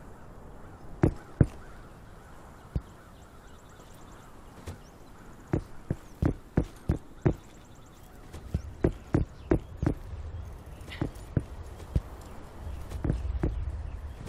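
Footsteps thud on rock at a steady pace.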